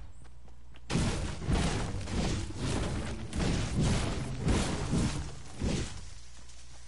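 A pickaxe strikes rock with repeated sharp hits.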